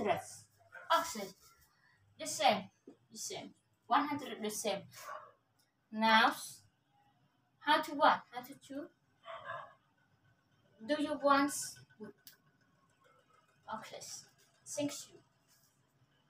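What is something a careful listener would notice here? A young woman speaks calmly and explains, close by.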